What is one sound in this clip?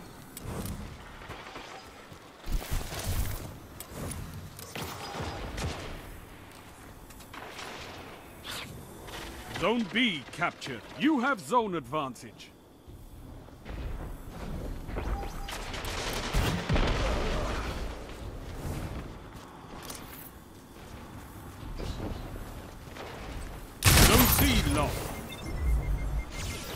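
Rapid gunfire rings out in short bursts.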